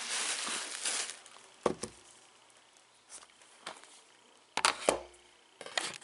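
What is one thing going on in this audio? A game case knocks on a table.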